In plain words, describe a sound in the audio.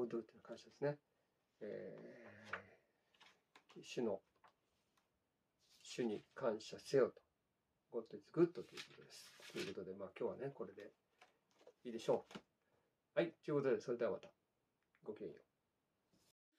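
A man speaks calmly and close by, with short pauses.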